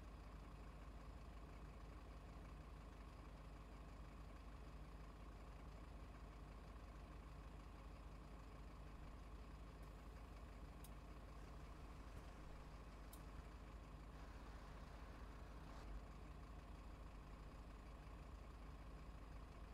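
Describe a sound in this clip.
A single-decker diesel bus idles.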